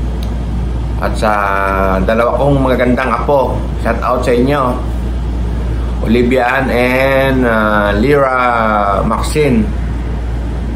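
A middle-aged man speaks calmly, close to the microphone.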